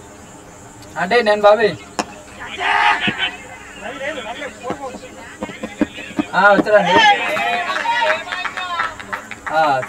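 Players shout loudly outdoors across an open field.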